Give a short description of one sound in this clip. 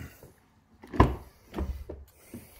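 A car door unlatches and swings open with a click.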